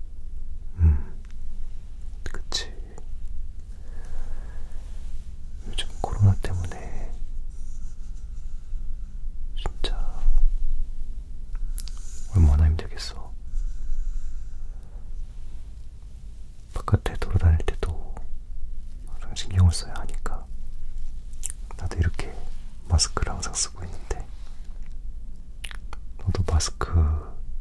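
A young person whispers softly and close to a microphone.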